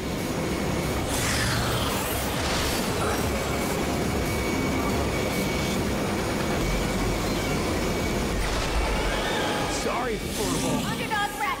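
Game sound effects swoosh and zap.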